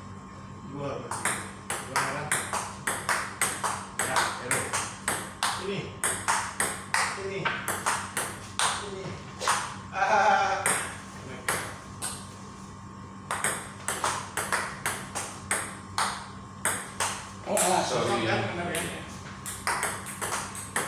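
A ping-pong ball clicks rapidly back and forth on a table and paddles.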